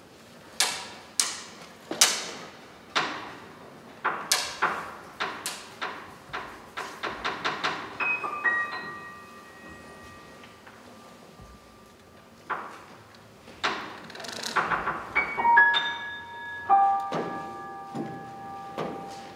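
A piano plays sparse, ringing notes and chords that slowly fade.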